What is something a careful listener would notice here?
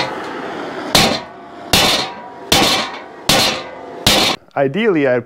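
A hammer strikes metal with sharp, ringing blows.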